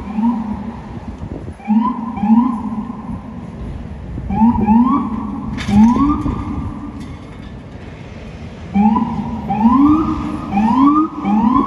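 City traffic rumbles steadily in the street below.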